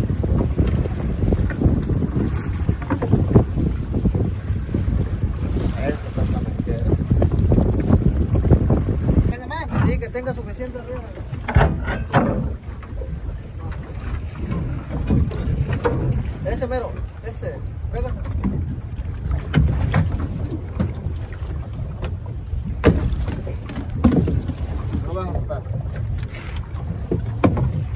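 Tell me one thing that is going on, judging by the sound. Wind rushes steadily over open water.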